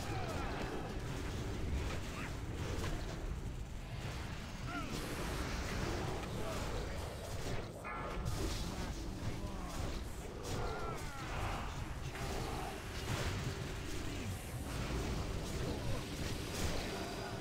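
Game spells burst and weapons clash in a busy fantasy battle.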